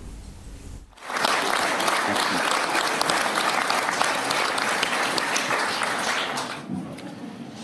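A crowd applauds loudly.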